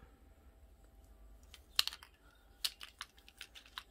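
A plastic paint bottle crackles and clicks as it is squeezed.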